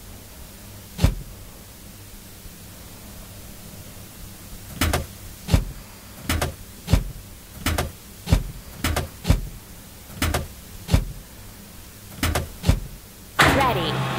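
Cartoon parts snap into place on a truck with short clicks.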